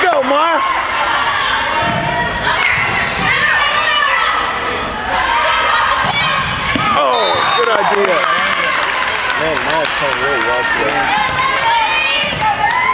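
Teenage girls shout and call out to each other in an echoing gym.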